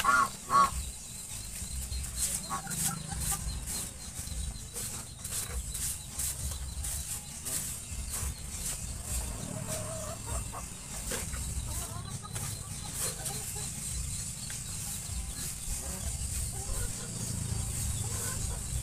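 Caged birds call now and then.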